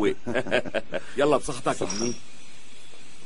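An older man laughs heartily.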